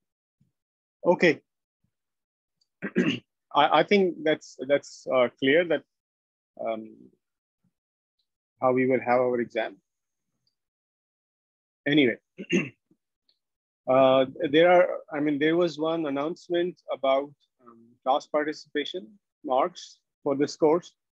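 A man speaks calmly through an online call, explaining at length.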